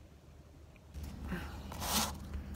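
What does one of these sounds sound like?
Cloth brushes and rustles close against the microphone.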